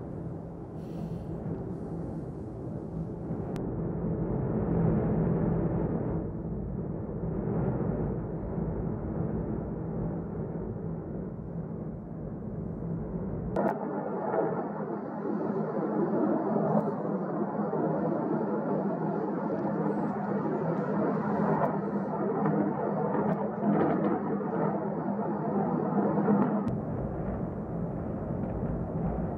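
A volcano roars and rumbles deeply.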